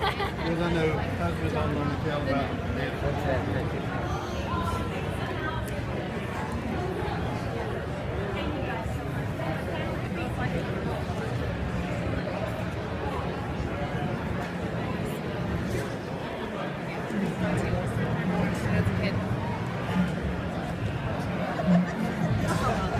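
A crowd of people chatter throughout a large echoing hall.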